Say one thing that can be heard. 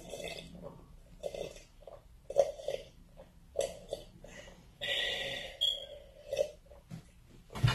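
A young girl slurps a drink.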